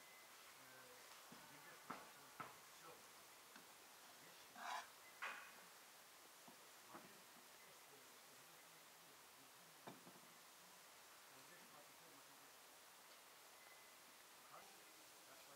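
A woman taps and handles crusty bread loaves with soft knocks and crackles.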